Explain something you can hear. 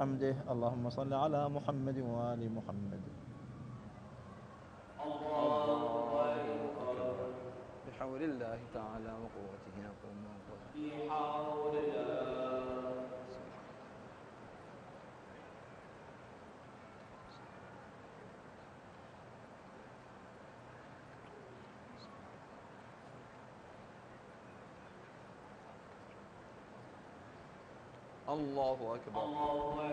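An elderly man chants a prayer through a microphone in a large echoing hall.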